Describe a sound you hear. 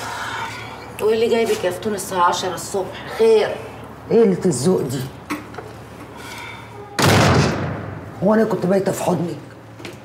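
A young woman speaks sharply and angrily close by.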